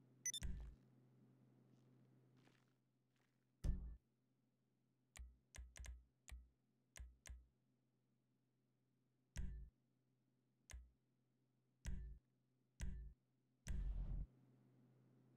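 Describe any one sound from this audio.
Short electronic menu clicks and beeps sound at uneven intervals.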